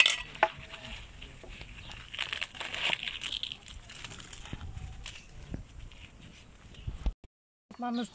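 Hands rustle while rolling flatbread.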